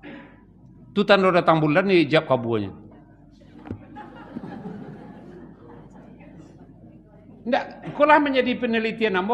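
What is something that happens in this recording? An elderly man speaks forcefully into a microphone in an echoing hall.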